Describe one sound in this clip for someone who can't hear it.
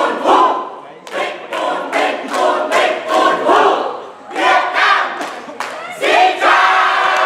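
A group of young women chant loudly in unison in a large echoing hall.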